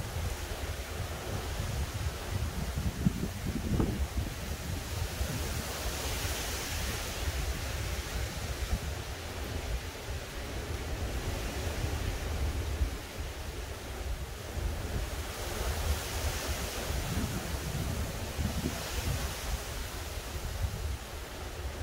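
Wind blows outdoors and rustles the leaves of trees.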